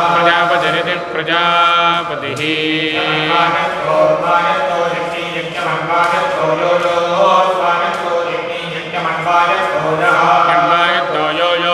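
Several men chant together in unison through microphones.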